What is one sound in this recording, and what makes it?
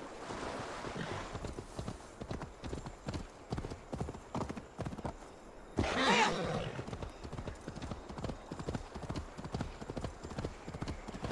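Hooves clop on stony ground.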